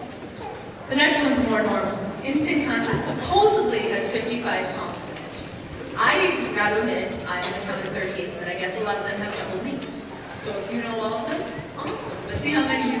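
A woman speaks into a microphone, heard through loudspeakers in a large echoing hall.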